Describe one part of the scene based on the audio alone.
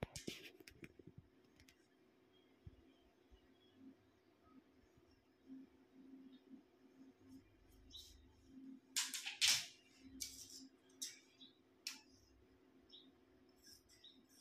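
Fabric rustles and brushes as hands smooth and handle it.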